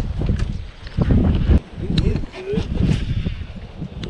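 A fishing reel clicks as its handle turns.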